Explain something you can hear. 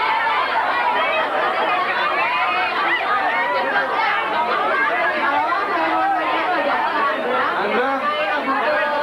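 A crowd of young women chatter and shout excitedly close by.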